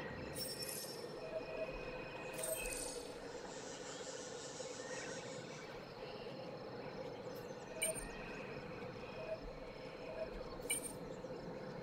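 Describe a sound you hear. Short electronic blips and chimes sound from time to time.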